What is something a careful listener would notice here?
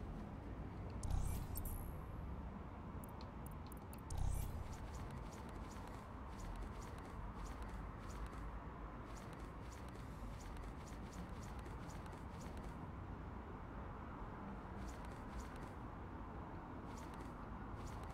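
Soft menu clicks tick as selections change.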